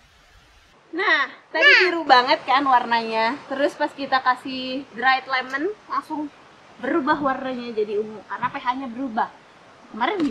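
A young woman speaks cheerfully and with animation close by.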